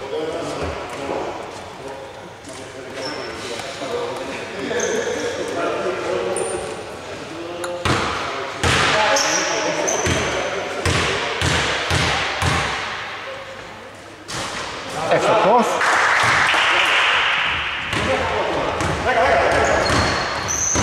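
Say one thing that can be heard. Players shout to each other across the hall.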